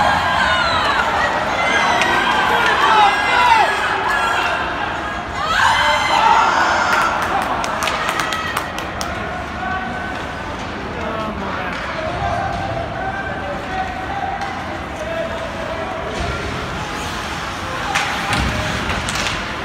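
A crowd of spectators chatters and calls out in a large echoing arena.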